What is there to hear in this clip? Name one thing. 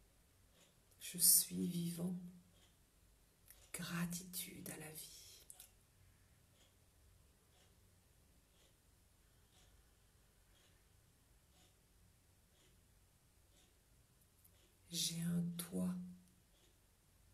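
A middle-aged woman speaks calmly and softly, close to a microphone, with long pauses.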